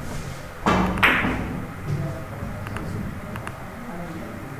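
Billiard balls click against each other and thud off the cushions.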